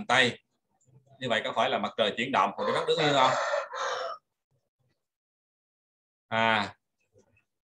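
A man speaks calmly through a microphone, as if on an online call.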